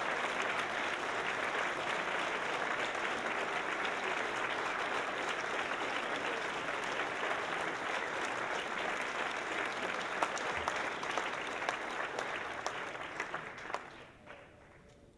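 A crowd applauds and cheers loudly in a large room.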